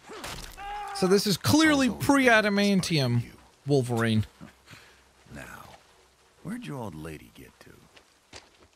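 A man speaks in a strained, urgent voice close by.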